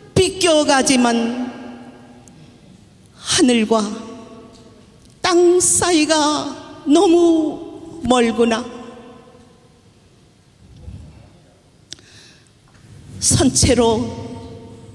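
An elderly woman sings into a microphone, heard through loudspeakers in an echoing hall.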